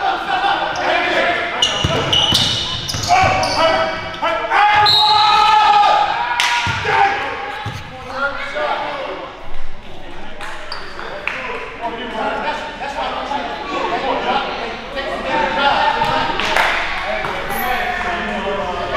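Young men shout and call out to each other in a large echoing gym.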